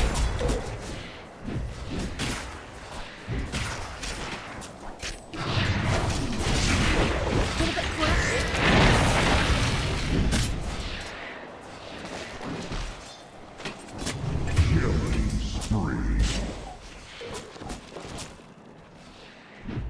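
Video game combat effects clash and crackle.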